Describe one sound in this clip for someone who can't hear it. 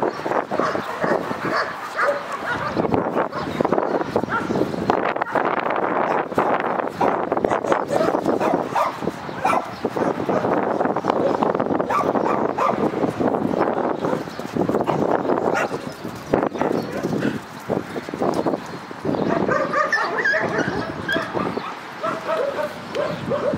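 Dogs growl and snarl as they play-fight close by.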